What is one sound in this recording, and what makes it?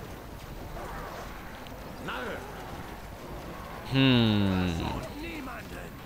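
Swords clash and soldiers fight in a distant battle.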